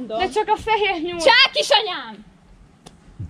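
A young woman sings out loudly.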